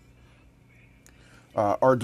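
A small push button clicks as it is pressed.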